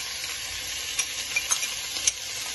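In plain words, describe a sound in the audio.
A small bowl taps lightly against the rim of a pot.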